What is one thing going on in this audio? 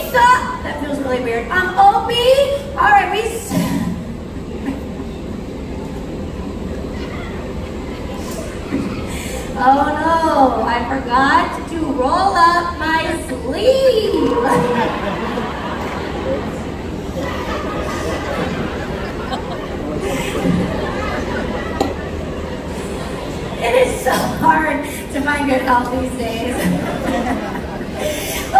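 A woman speaks with animation through a loudspeaker, echoing in a large open space.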